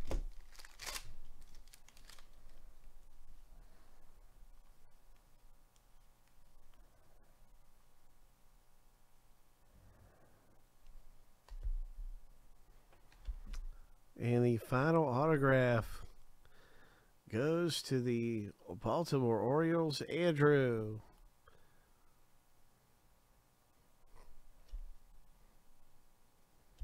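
Trading cards rustle and slide softly as they are handled.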